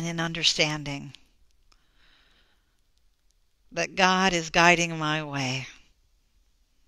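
A woman speaks warmly and slowly into a close microphone.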